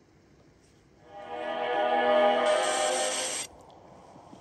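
A tune plays from a tablet's small speaker.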